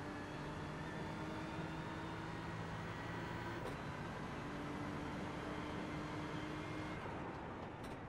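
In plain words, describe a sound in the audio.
A racing car engine roars at high revs, climbing through the gears.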